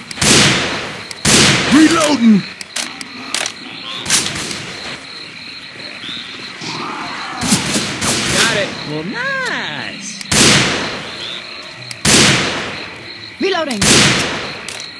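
A scoped rifle fires single shots.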